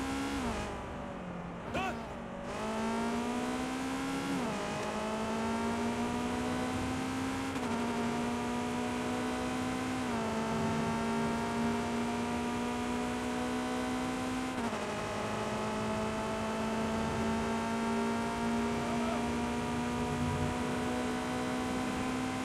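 A sports car engine roars at high revs, shifting gears as it speeds up.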